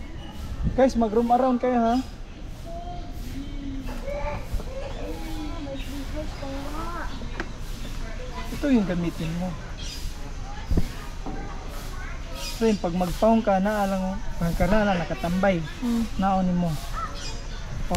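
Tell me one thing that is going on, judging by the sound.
A woman talks nearby in a relaxed, conversational way.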